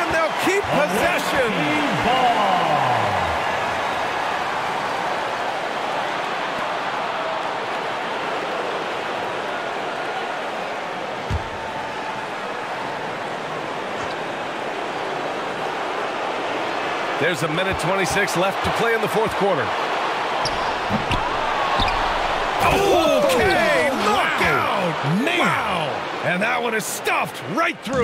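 A large indoor crowd murmurs and cheers steadily.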